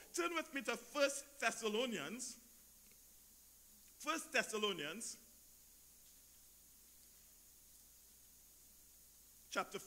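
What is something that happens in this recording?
A man speaks slowly and deliberately through a microphone, with long pauses.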